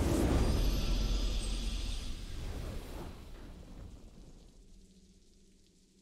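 A triumphant victory fanfare bursts out loudly and slowly fades away.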